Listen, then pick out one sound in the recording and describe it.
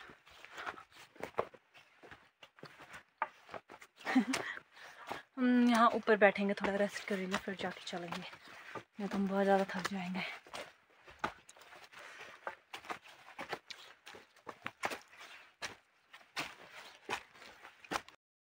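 Footsteps crunch on a forest path.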